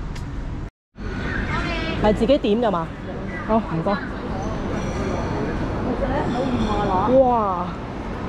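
A crowd of people chatters in a large echoing hall.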